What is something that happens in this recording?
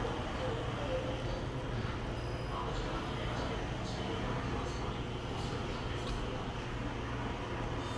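A spoon scrapes and clinks against a stone pot.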